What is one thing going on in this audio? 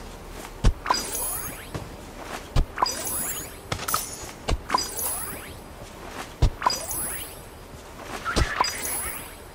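A shovel thuds into soft earth again and again at a steady pace.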